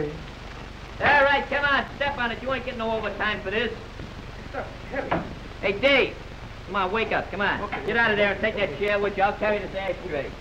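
Several men talk and shout with animation.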